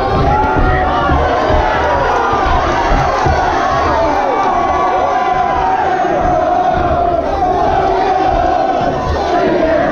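Boxing gloves thud against bodies in quick bursts.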